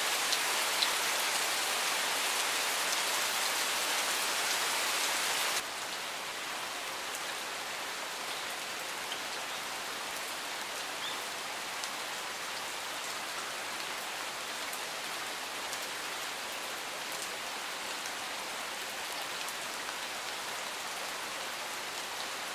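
Steady rain falls and patters on leaves and gravel.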